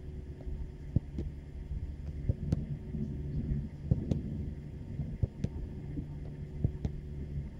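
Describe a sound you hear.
A football thuds repeatedly against a goalkeeper's gloves.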